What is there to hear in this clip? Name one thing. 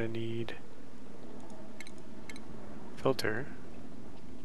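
Soft game menu clicks and chimes sound.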